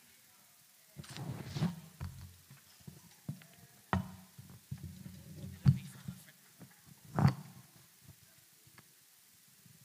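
A woman speaks calmly into a microphone, heard through loudspeakers in an echoing hall.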